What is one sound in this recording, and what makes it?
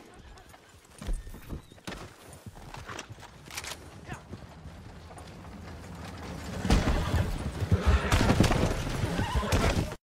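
Horse hooves thud on a dirt track.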